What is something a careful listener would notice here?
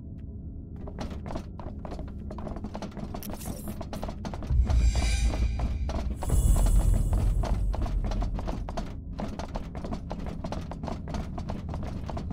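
Boots tramp steadily on a metal floor.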